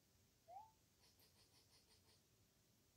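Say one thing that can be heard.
Faint, light video game chimes patter in a quick rhythm.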